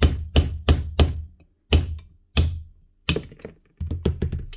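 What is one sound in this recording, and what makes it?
A metal punch is tapped sharply with a tool handle.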